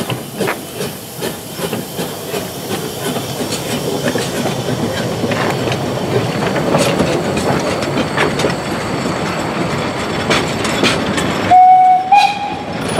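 Train wheels clatter and rumble over the rails close by.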